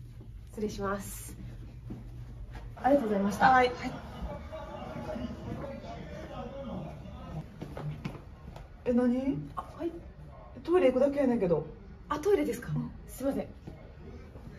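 A young woman speaks close by.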